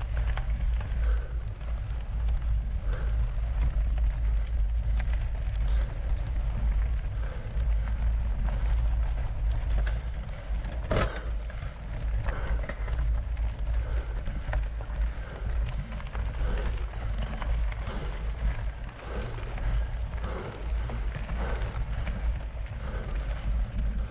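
Wind rumbles loudly against a moving microphone outdoors.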